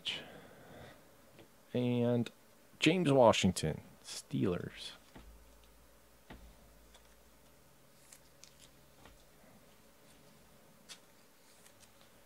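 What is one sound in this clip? Trading cards rustle and tap softly as they are handled.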